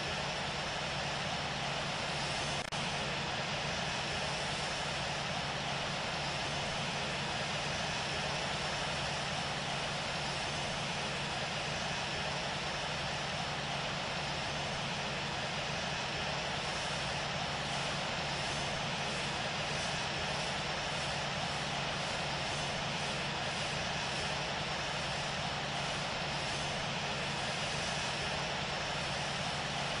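Jet engines roar steadily as an airliner taxis.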